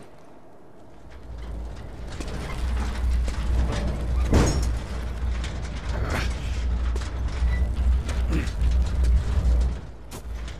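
A heavy metal bin rolls and rumbles over pavement as it is pushed.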